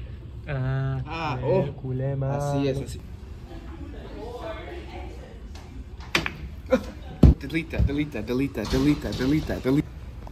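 Pool balls knock together and roll.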